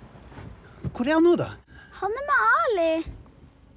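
A young girl sobs and wails close by.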